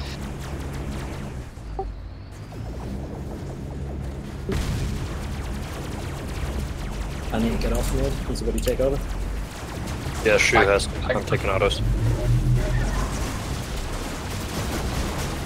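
A laser weapon fires with a buzzing zap.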